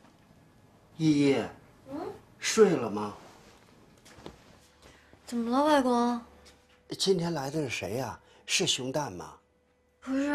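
An elderly man speaks up close in a questioning tone.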